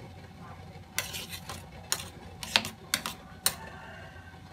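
A metal spoon clinks against the side of a metal pot.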